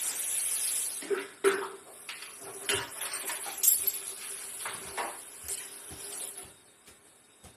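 Liquid splashes and sloshes into a blender jar.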